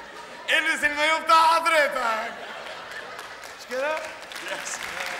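A man sings out loudly through a microphone.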